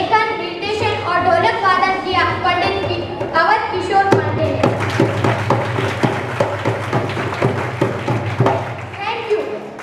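A young girl sings loudly through a microphone.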